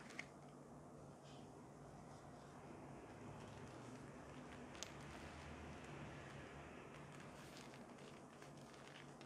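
Gloved hands rustle against plastic.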